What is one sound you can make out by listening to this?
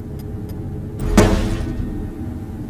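A metal tray clanks.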